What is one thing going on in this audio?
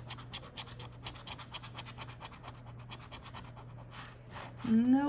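A coin scratches quickly and rhythmically.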